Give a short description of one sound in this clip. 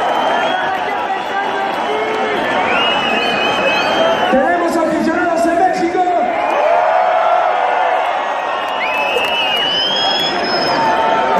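A rock band plays loudly, heard from within a large echoing hall.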